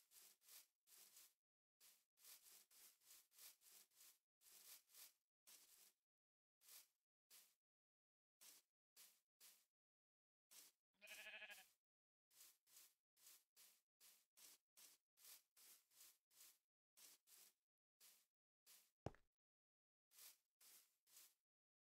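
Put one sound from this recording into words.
Footsteps crunch steadily on grass and dirt.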